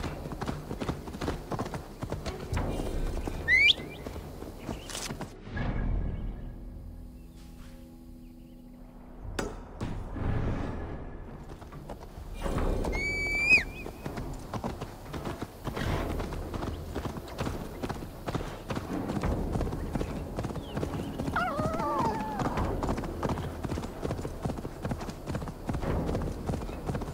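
Horse hooves clop steadily on a dirt path.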